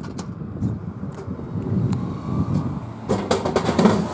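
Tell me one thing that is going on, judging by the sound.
A snack package drops into a vending machine tray with a thud.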